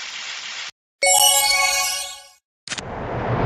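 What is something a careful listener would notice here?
A bright chiming jingle plays.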